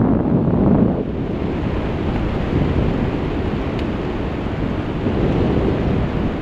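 Wind rushes and buffets loudly against a microphone high in open air.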